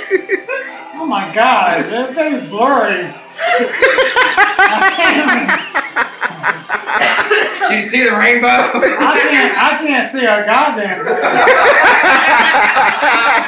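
A bald man close by laughs loudly.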